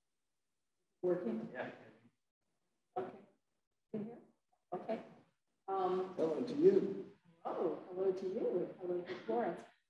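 A woman speaks calmly through a microphone, in short phrases with pauses.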